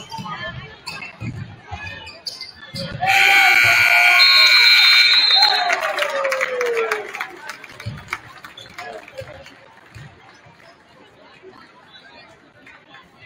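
A crowd cheers and chatters.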